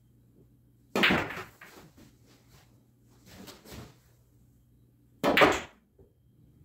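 A cue stick strikes a billiard ball with a sharp clack.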